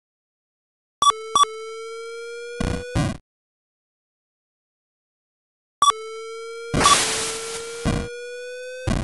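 Electronic gunshots crack in short bursts.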